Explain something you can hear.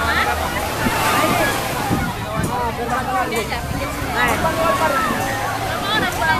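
Waves wash and break onto the shore.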